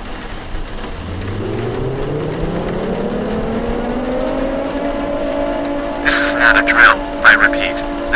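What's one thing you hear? An emergency alarm tone rises in pitch and then holds steady.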